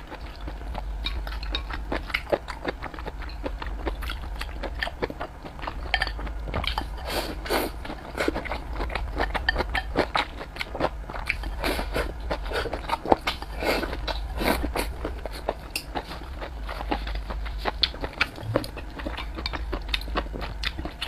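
A young woman chews and slurps food noisily up close.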